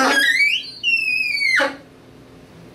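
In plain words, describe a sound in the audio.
A saxophone shrieks with loud, high, sliding squeals.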